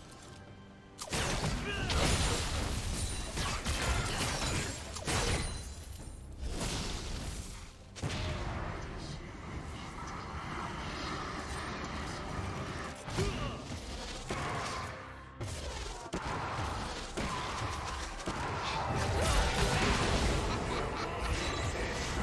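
Game spell effects whoosh and blast during a fight.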